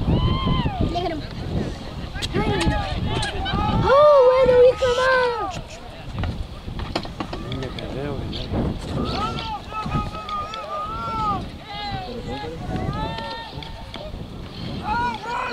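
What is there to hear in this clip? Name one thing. Men in a crowd shout and cheer excitedly outdoors.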